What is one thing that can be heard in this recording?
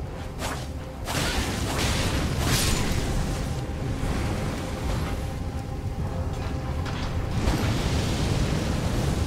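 Flames roar in bursts.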